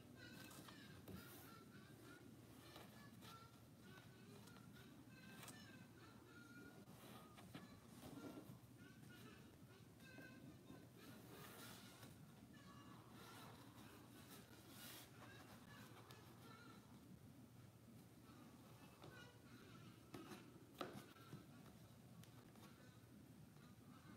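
Cardboard puzzle pieces scrape and tap softly as they are slid into place.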